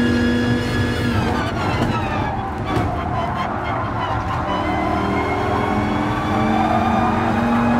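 A racing car engine drops sharply in pitch, then climbs back up.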